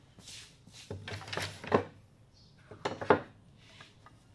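Wooden pieces clatter as they are set down on a bench.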